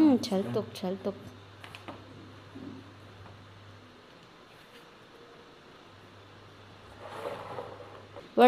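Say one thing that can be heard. Plastic parts click and rattle as a man handles a tripod.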